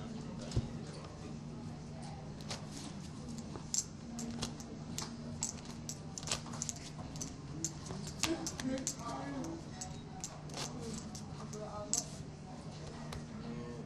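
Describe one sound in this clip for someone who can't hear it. Clay poker chips click as they are riffled in a hand.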